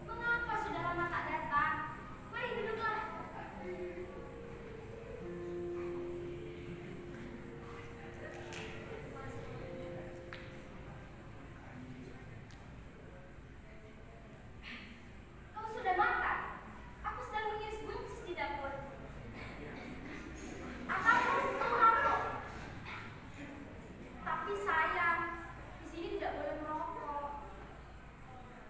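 A woman speaks with feeling on a stage, heard from the audience in a hall.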